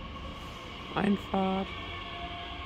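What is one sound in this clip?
A train sounds two short horn blasts nearby.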